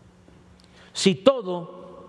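An elderly man speaks into a microphone, heard through a loudspeaker.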